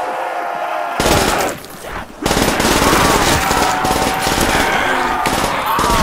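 A gun fires loud rapid bursts.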